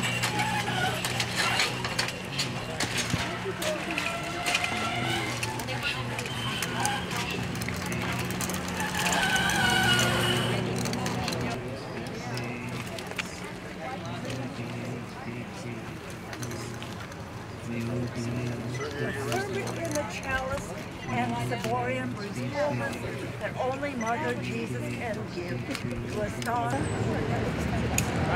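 A crowd of older men and women talk and call out outdoors.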